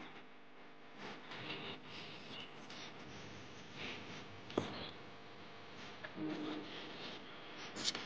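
Small plastic parts click as hands press them into a board.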